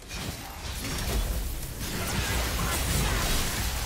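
Electric blasts crackle and boom as lightning strikes.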